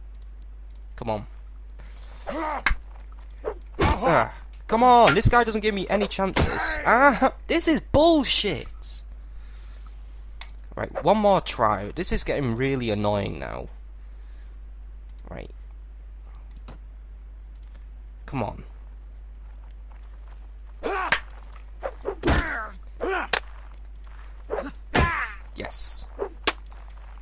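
Sword blows land with sharp knocks and clangs.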